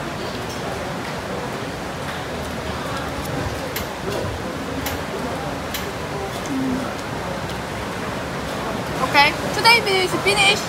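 A busy crowd murmurs in the background.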